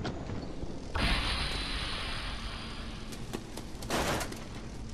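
Steam hisses loudly in a sudden burst, then slowly dies down.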